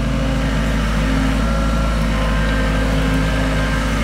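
Earth and clods thud as an excavator bucket drops them.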